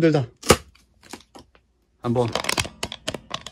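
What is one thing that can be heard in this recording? A plastic strap rustles and snaps against a cardboard box.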